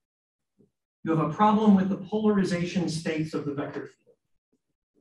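A man speaks calmly, heard through a microphone.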